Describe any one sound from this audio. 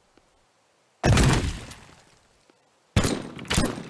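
A gun fires loud blasts that echo briefly.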